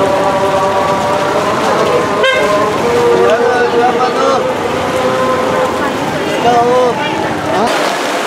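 A crowd chatters all around, outdoors.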